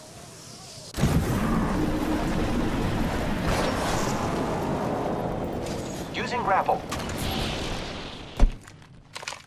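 Thrusters roar loudly during a fast descent.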